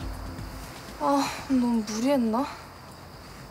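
A young woman speaks with a sigh, close by.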